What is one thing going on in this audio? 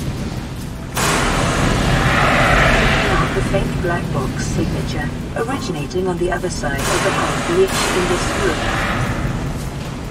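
Fire extinguisher spray hisses in loud bursts.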